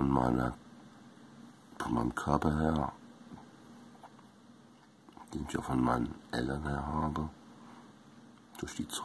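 An elderly man speaks calmly and close up, in short bursts with pauses.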